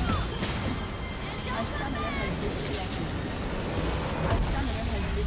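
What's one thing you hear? Battle effects crackle and clash in a video game.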